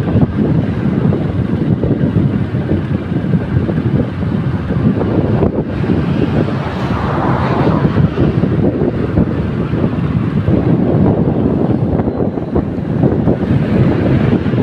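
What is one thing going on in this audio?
Wind rushes loudly and steadily past.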